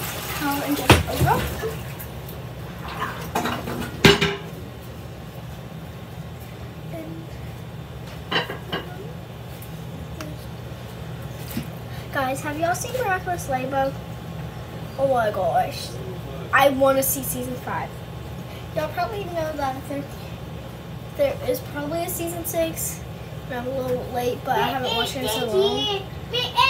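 A young girl talks close to a microphone, with animation.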